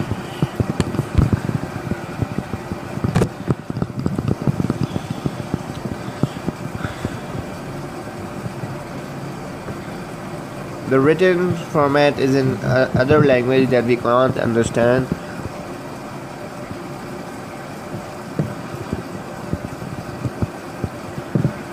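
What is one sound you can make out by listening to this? Fingers tap and rub on a phone close by.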